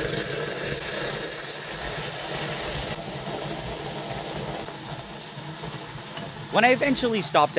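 Liquid fizzes and bubbles vigorously.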